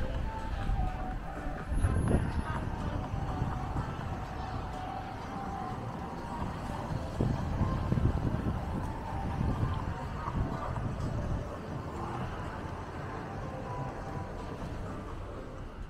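City traffic rumbles steadily nearby, outdoors.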